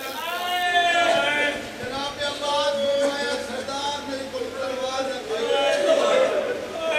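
A man sings loudly and passionately into a microphone.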